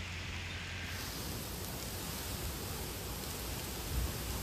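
Strong wind roars and gusts through trees.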